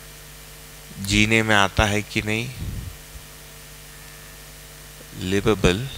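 A man speaks calmly and clearly into a close microphone, in short bursts.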